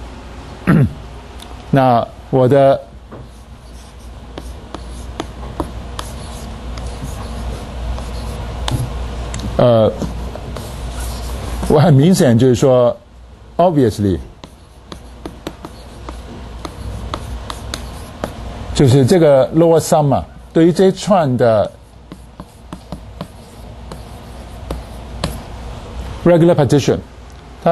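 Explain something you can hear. A man speaks calmly through a microphone in short bursts.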